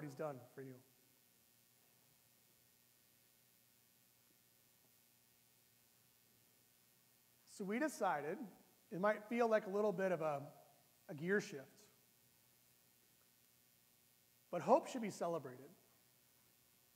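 A middle-aged man speaks calmly through a microphone in an echoing room, with long pauses.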